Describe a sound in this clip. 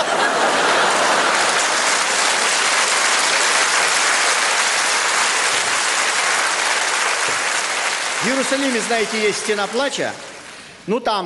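An audience applauds and laughs loudly in a large hall.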